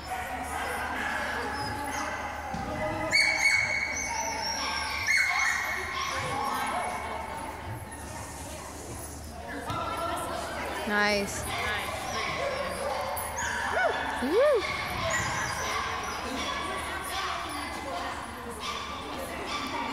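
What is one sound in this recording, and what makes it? Voices murmur and chatter in a large echoing hall.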